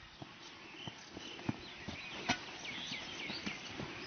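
Boots thud on grass as a man runs.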